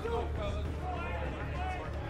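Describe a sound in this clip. A group of men cheer loudly.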